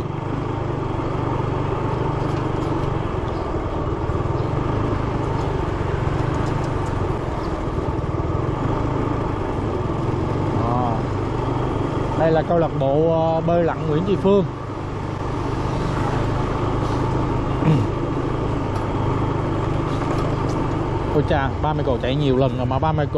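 A motorbike engine hums steadily close by as it rides along.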